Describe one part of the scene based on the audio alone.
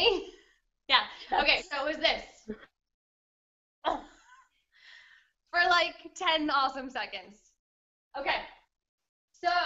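A young woman laughs over an online call.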